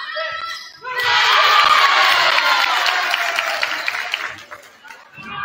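A crowd of spectators cheers loudly.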